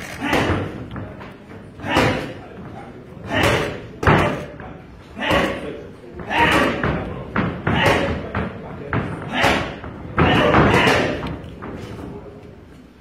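Gloved punches thud sharply against pads in a row.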